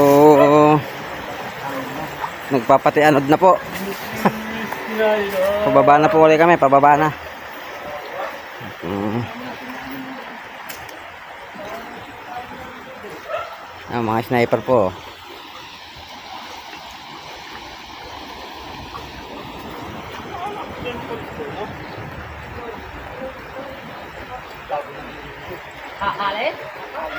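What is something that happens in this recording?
Water sloshes around legs as men wade through a river.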